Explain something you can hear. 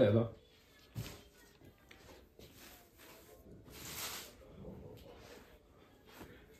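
Fabric rustles as it is handled and folded.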